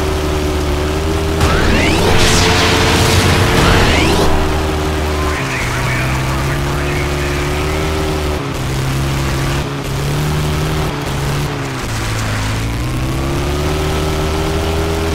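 A buggy engine roars steadily, its pitch shifting as it shifts gears.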